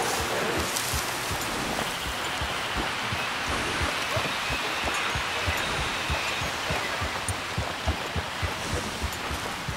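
Horse hooves thud steadily on soft forest ground.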